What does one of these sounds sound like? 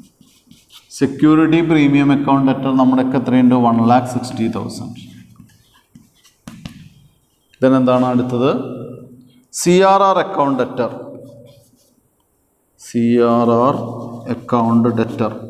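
A middle-aged man speaks with drawn-out, sing-song phrases, close by.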